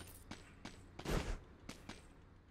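A door opens with a low whoosh.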